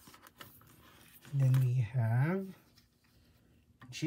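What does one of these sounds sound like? A binder page flips over with a plastic rustle.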